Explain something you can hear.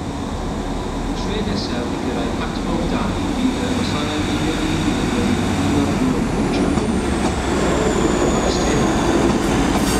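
A diesel train engine drones as it approaches from a distance.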